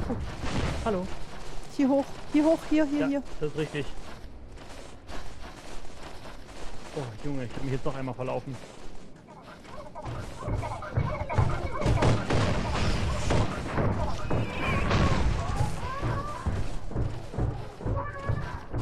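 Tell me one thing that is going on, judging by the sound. A young woman talks into a close microphone with animation.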